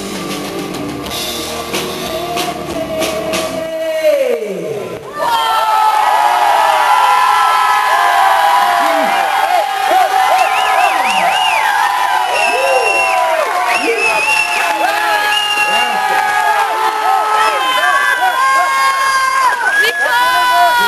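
Electric guitars play loudly through amplifiers in a large echoing room.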